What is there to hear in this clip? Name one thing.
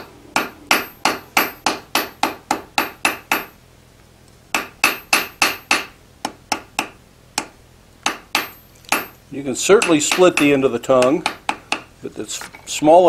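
A hammer strikes hot metal on an anvil with sharp, ringing blows in quick rhythm.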